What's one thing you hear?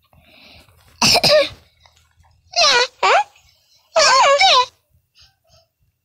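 A cartoon cat squeals and chatters in a high, sped-up voice.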